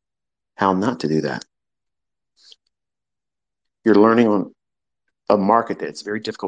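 A man speaks calmly and clearly into a microphone, in short phrases.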